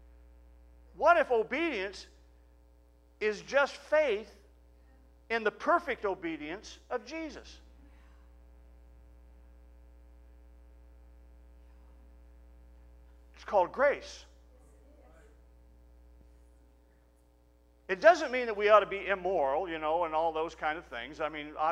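A middle-aged man speaks with animation into a microphone, in bursts with long pauses.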